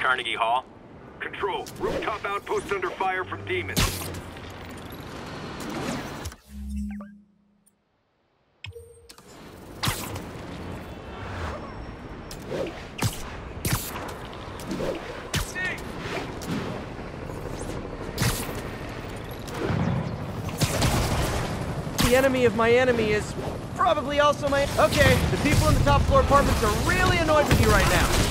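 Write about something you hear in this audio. Web lines shoot out with quick sharp snaps.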